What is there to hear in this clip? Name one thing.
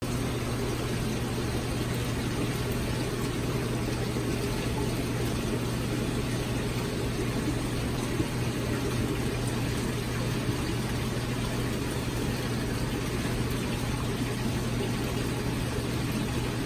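Air bubbles burble steadily in water.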